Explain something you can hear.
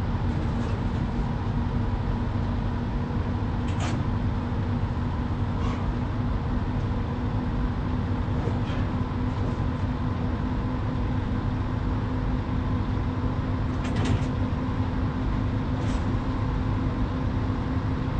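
A heavy truck engine rumbles steadily at cruising speed.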